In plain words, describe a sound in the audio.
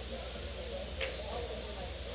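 A cue ball strikes a rack of pool balls with a sharp crack.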